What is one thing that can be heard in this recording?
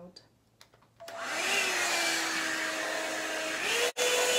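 A hair dryer brush whirs loudly and steadily.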